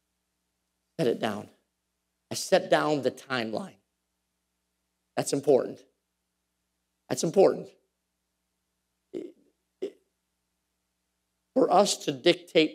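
A man preaches with animation in short bursts over a microphone, with pauses between phrases.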